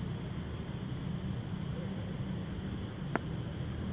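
A cricket bat taps on hard ground.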